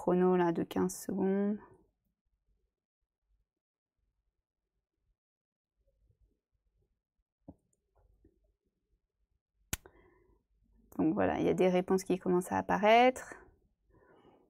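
A young woman speaks calmly and closely into a microphone, with pauses.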